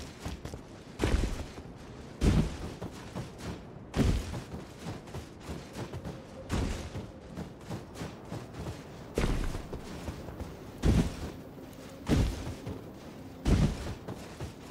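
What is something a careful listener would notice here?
Heavy thuds land at irregular intervals.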